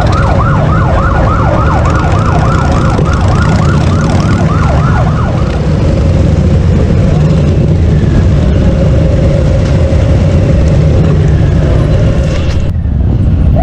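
Motorcycle engines rev loudly as bikes ride past.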